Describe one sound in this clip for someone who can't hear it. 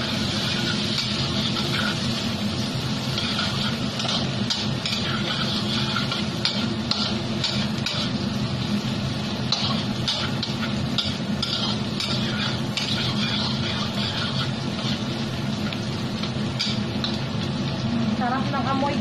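A metal spatula scrapes and clatters against a wok.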